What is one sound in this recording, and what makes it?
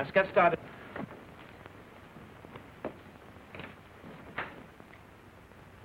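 Footsteps hurry across a floor.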